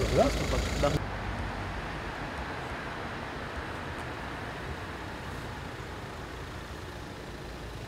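Car traffic hums steadily in the distance.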